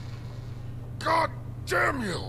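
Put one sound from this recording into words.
A gruff man speaks angrily and scornfully.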